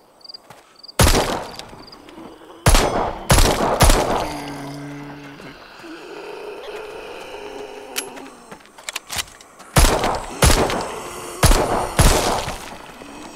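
A pistol fires loud, sharp shots one after another.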